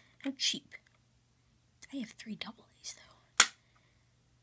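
A small plastic toy car clicks as fingers press its lid.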